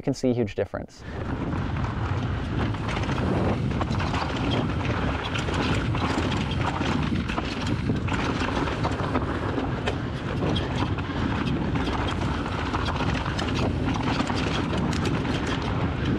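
A bicycle rattles and clatters over bumps and rocks.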